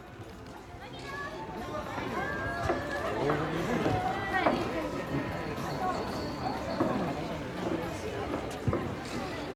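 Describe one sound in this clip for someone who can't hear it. A young girl talks into a microphone over loudspeakers.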